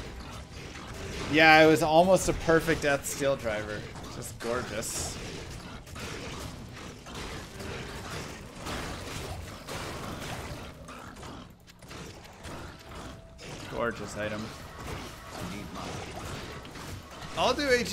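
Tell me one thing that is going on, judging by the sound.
Spells crackle and explode in a video game's battle.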